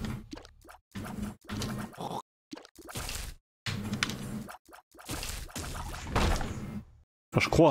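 Game sound effects of shots and splats play.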